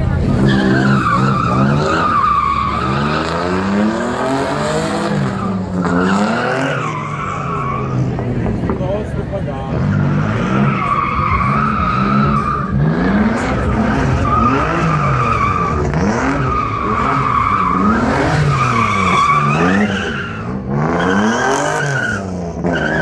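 Car tyres screech loudly on asphalt in long squeals.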